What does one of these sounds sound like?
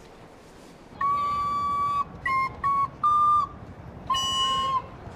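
A flute plays a slow melody of held notes outdoors.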